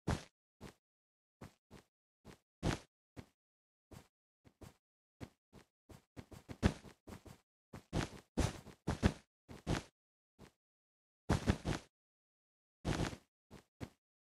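Blocks are placed one after another with soft, quick thuds.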